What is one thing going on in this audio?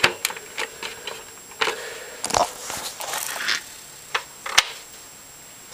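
Plastic clicks and clatters as a game cartridge is pushed into a console.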